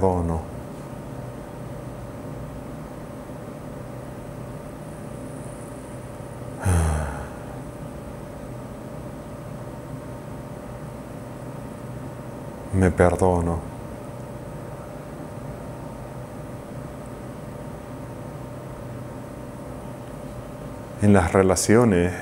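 A man speaks calmly and softly into a close microphone, in short phrases with long silent pauses.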